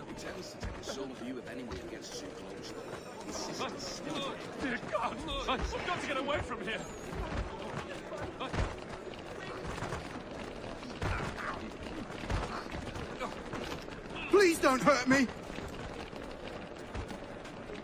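A crowd of men murmurs and chatters around the listener.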